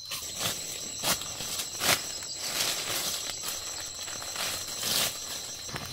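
Dry leaves rustle and crunch as fruit is picked up from the ground.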